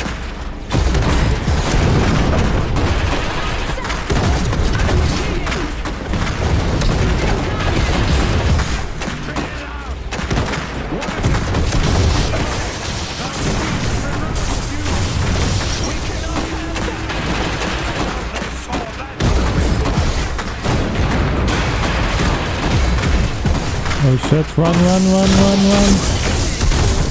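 Electric energy crackles and hums in a game battle.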